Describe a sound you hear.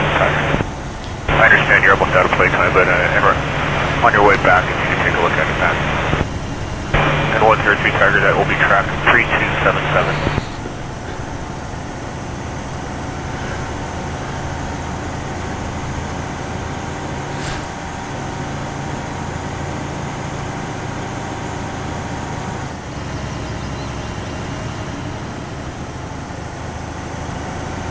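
An armoured vehicle's engine rumbles steadily as it drives.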